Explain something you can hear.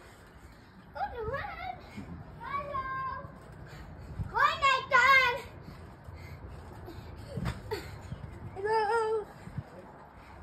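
A young child shouts and squeals excitedly nearby.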